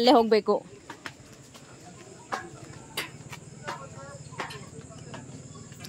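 Footsteps thump on metal stairs.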